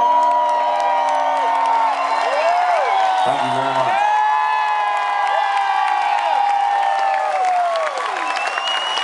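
A man sings into a microphone over loud speakers.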